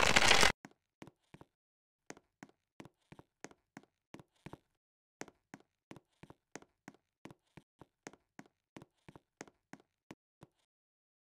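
Quick, light footsteps patter steadily.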